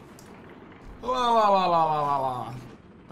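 A young man lets out a long, falling drawn-out exclamation.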